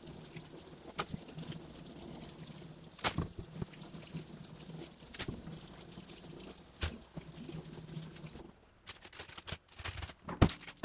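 Sweet potatoes thump down one by one onto parchment paper in a wire basket.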